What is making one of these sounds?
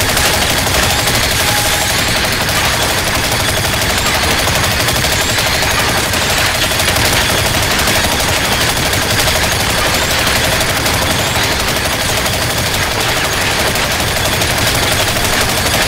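A laser gun hums as it fires a beam.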